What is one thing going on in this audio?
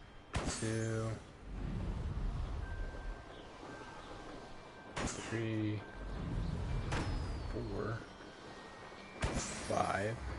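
Balloons pop with sharp bangs.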